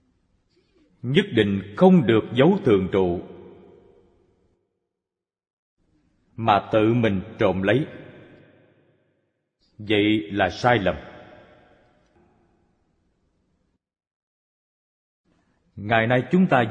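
An elderly man speaks calmly into a microphone in short phrases, with pauses in between.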